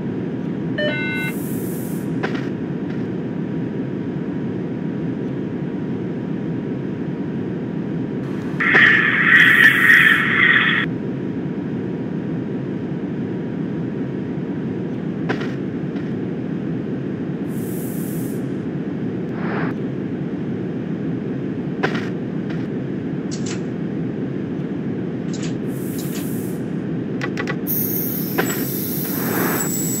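An electric train hums and rumbles steadily along the track.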